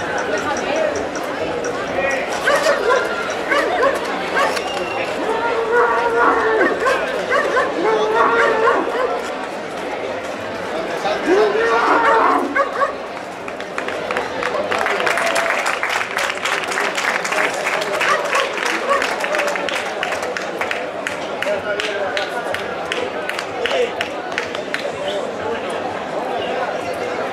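A large crowd shouts and cheers outdoors.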